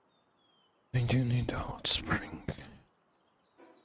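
A young man speaks briefly into a nearby microphone.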